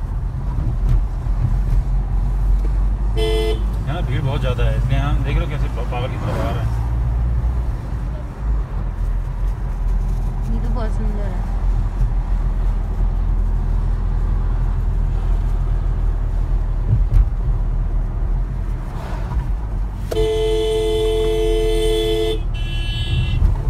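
A car engine hums steadily from inside a moving car.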